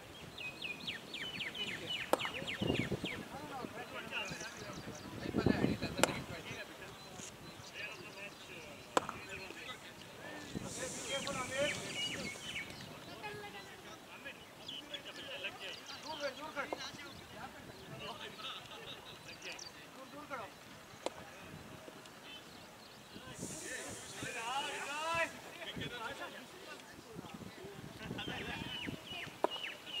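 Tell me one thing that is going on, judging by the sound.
Several men talk and call out to each other outdoors at a distance.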